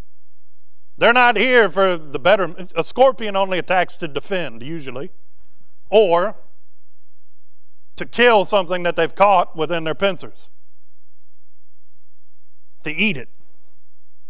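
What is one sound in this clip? A man preaches calmly into a microphone, with pauses.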